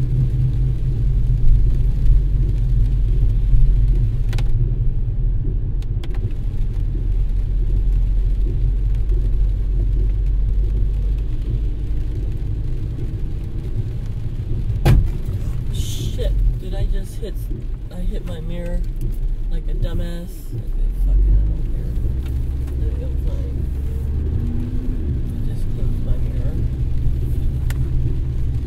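Tyres hiss on the wet road.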